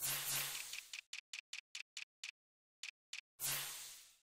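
Game menu sounds tick quickly as options scroll.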